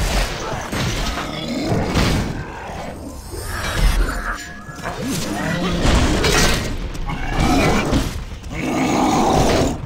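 Weapons clash and strike in combat.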